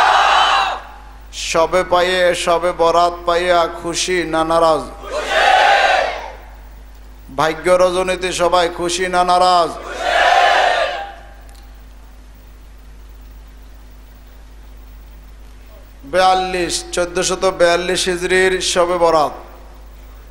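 An elderly man preaches loudly into a microphone, in a chanting, drawn-out voice, with long pauses.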